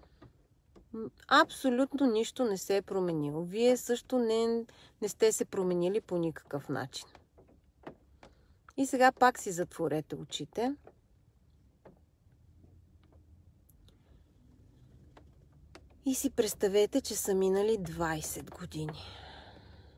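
A middle-aged woman speaks calmly and close by, with pauses.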